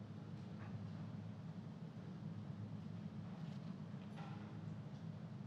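Footsteps tap on a hard floor in a large hall.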